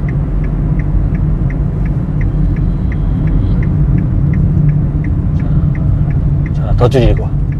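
A car engine hums with steady road rumble from inside the car.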